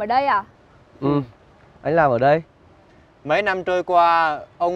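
A young man speaks up close.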